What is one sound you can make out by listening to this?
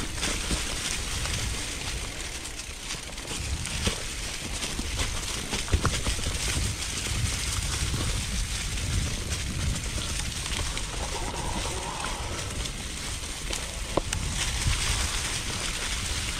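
Bicycle tyres crunch over dry leaves on a dirt trail.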